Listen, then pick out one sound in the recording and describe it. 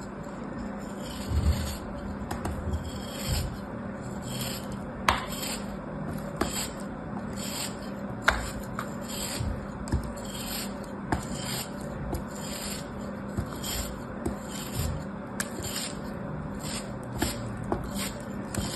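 A blade scrapes and slices through crumbly sand in short strokes, close up.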